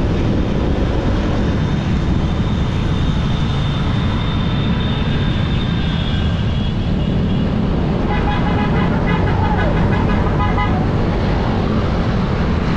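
Scooter engines hum as a group of riders cruises along a road.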